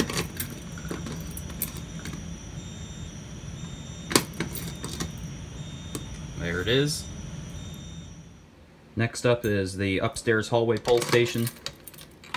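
A key turns in a lock with a click.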